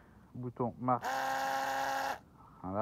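An electric screwdriver whirs briefly at a steady pitch.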